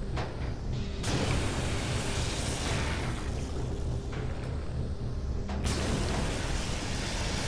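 A cutting torch hisses and sputters as it burns through metal.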